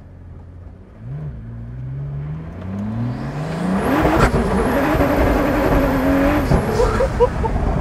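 A car engine roars, rising in pitch as it accelerates hard.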